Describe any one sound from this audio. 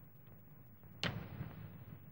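A door shuts with a short knock.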